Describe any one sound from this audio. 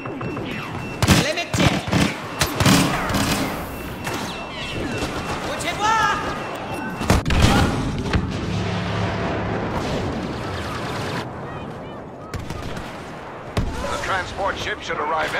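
Blaster shots fire in rapid bursts.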